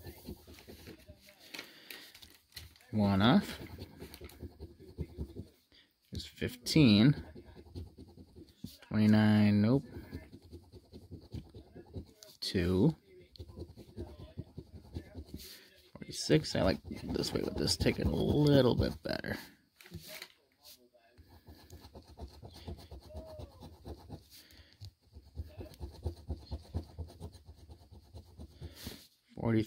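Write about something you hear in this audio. A coin scratches rapidly across a card, rasping in short strokes.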